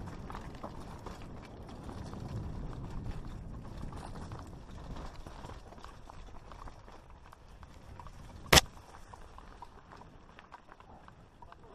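A mountain bike rattles on a rough descent.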